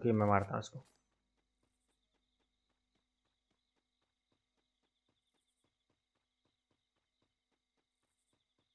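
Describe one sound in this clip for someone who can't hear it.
Footsteps thud softly and quickly on grass.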